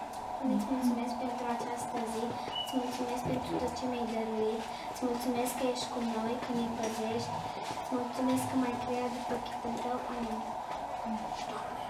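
A child prays aloud in a soft, steady voice nearby.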